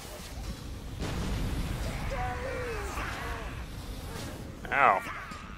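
A jet of fire roars loudly.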